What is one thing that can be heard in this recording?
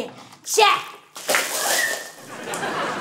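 Water splashes down from above.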